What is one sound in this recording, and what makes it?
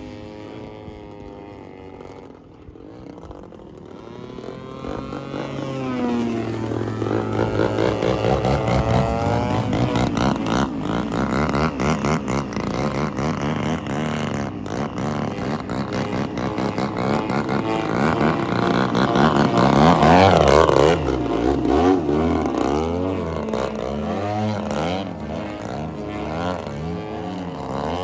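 A large gas engine on a radio-controlled model plane drones overhead, rising and falling in pitch as it passes low.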